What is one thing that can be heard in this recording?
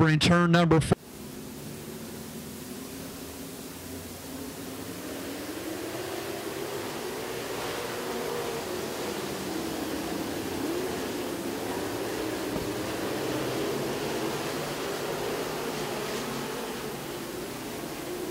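Racing car engines roar and whine.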